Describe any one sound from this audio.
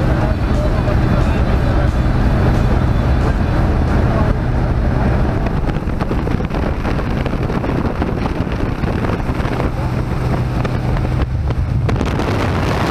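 An aircraft engine drones steadily inside a small cabin.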